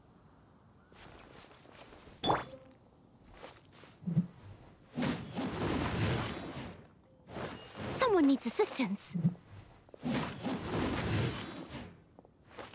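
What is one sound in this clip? A blade strikes wooden barricades again and again, with loud whooshes and crashes.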